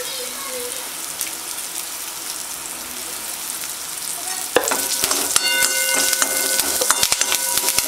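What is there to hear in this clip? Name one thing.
Hot oil sizzles steadily in a pan.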